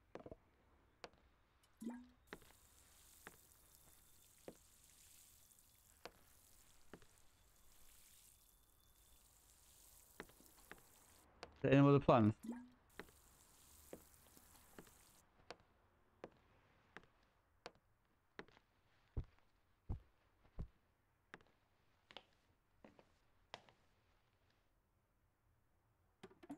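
Footsteps tap steadily across a floor.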